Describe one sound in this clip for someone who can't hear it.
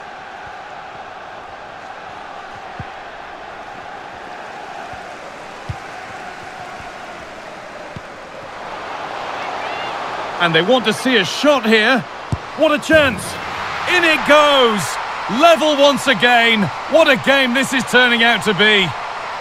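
A stadium crowd murmurs steadily, then roars and cheers loudly.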